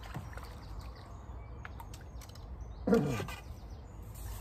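A fish splashes in the water as it is landed in a net.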